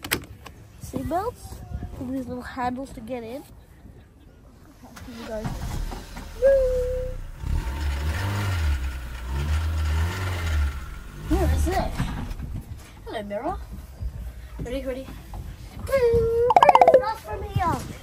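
A boy talks excitedly close by.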